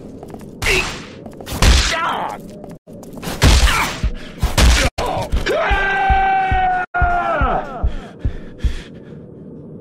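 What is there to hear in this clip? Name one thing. Heavy gunshots boom in quick bursts.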